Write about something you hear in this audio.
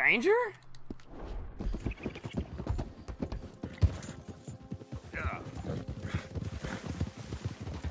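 Horse hooves thud steadily as a horse walks over rough ground.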